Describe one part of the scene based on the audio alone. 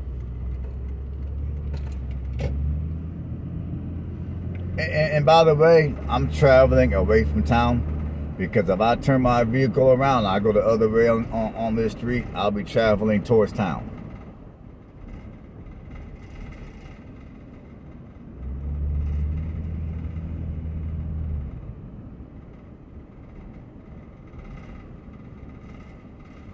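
A car engine hums as the car drives along a road.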